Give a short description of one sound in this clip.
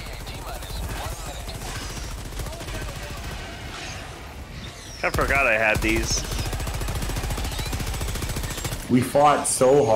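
Gunfire rattles steadily from a video game.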